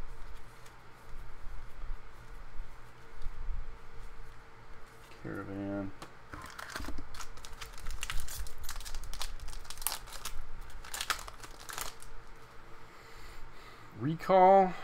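Playing cards rustle and slide against each other in hands.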